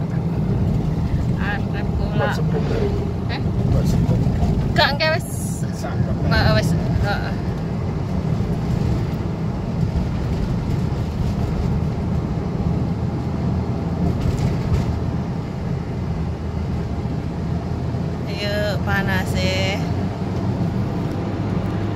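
A car's engine hums steadily as it drives along a road.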